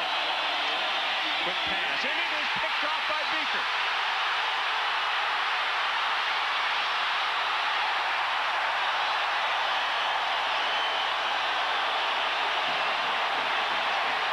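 A large stadium crowd cheers and roars loudly throughout.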